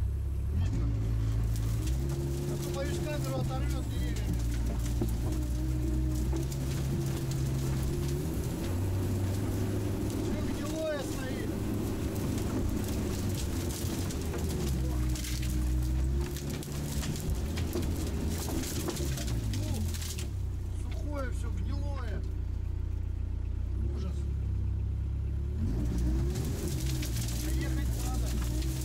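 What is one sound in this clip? Branches scrape and snap against the vehicle.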